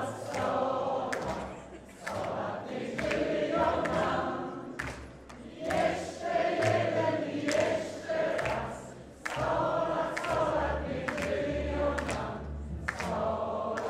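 A small jazz band plays lively music with a double bass and a trumpet.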